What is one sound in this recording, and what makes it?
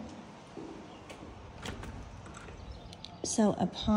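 A door lock clicks open.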